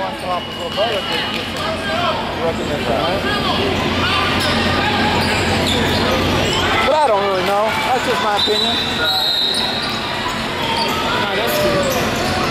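Basketball sneakers squeak on a hardwood floor.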